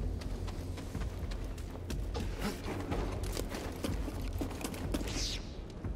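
Footsteps crunch over loose rock.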